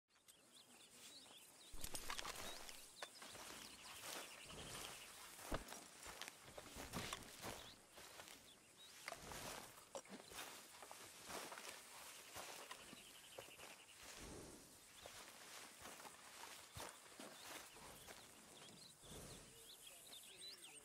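Boots tread on grass.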